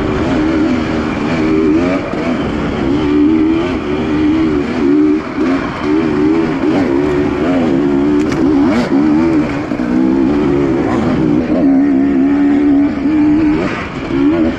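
Wind buffets loudly past.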